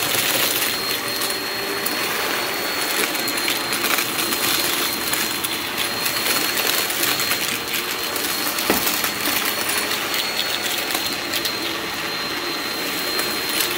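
A vacuum cleaner whines steadily as it runs over a rug.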